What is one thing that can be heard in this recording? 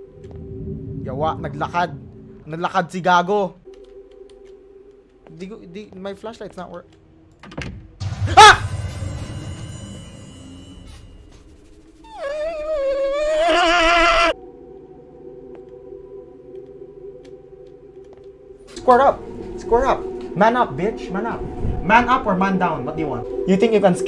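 A young man talks and exclaims with animation into a close microphone.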